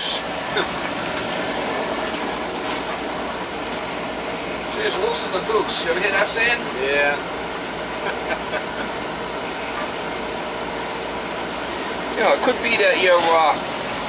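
A furnace burner roars steadily.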